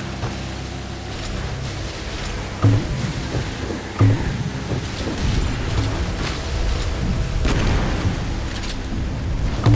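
Water splashes as a boat speeds over waves.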